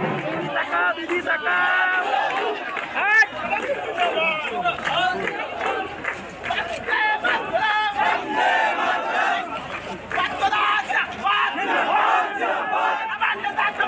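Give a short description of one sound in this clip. A crowd of men and women shouts and cheers loudly outdoors.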